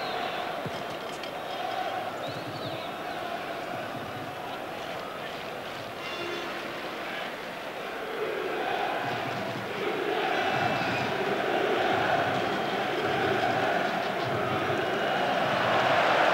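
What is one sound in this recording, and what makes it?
A large stadium crowd chants and roars steadily, growing louder.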